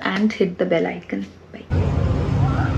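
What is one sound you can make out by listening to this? A young woman speaks calmly and cheerfully close to a microphone.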